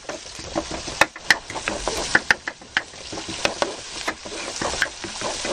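A wooden spatula scrapes and clicks against a pan.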